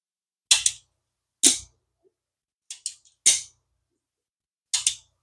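A fishing reel clicks and clatters sharply as it is handled close by.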